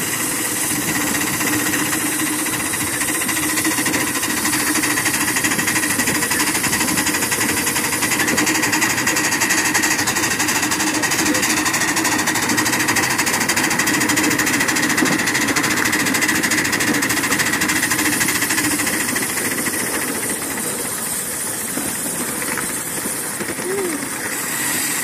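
A small steam locomotive chuffs and hisses steadily as it runs.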